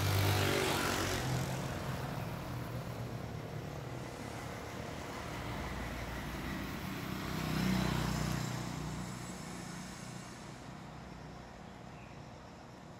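A motorbike engine hums as it rides past on a nearby road.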